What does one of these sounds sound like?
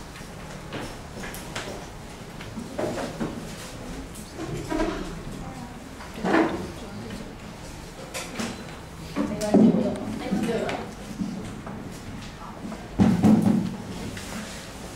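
A woman speaks calmly into a microphone, heard through a loudspeaker in a room.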